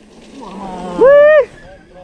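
A bicycle rolls past over a dirt trail.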